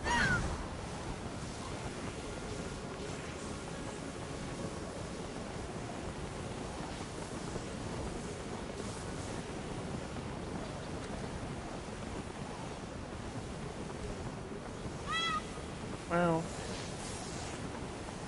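Wind rushes steadily past during flight.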